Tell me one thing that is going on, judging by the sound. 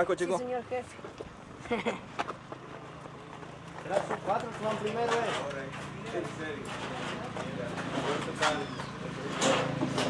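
Boys talk and chatter nearby.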